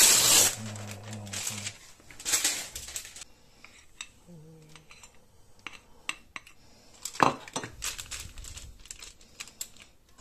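Baking paper crinkles and rustles close by.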